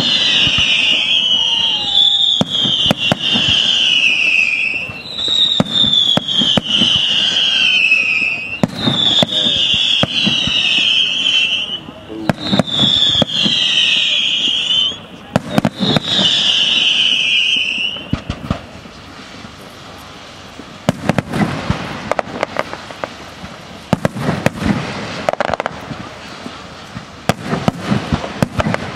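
Fireworks bang and pop in rapid bursts nearby.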